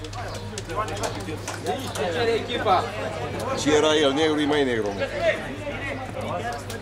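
Men talk and shout nearby, outdoors.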